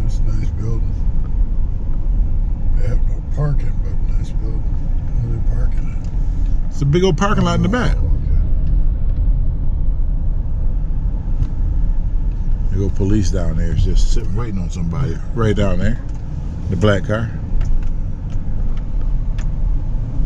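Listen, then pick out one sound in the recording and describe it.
A car drives along with a steady low rumble.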